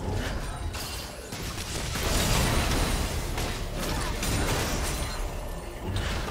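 Spell blasts and weapon clashes crackle and boom in a fast video game battle.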